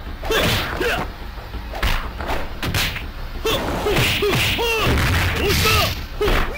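Punches and kicks land with sharp hit effects in an arcade fighting game.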